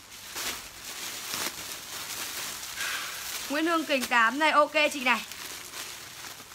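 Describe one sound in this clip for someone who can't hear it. Plastic bags crinkle and rustle as they are handled.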